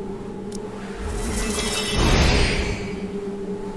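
A sparkling magical burst whooshes loudly and fades.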